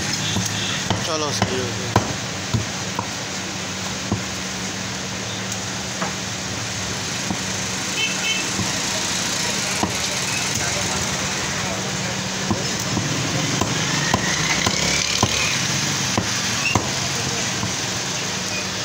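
A heavy cleaver chops through fish on a wooden block with sharp thuds.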